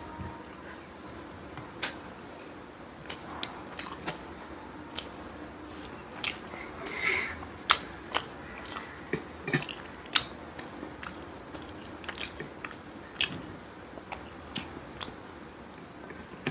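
A young woman chews and smacks her lips close by.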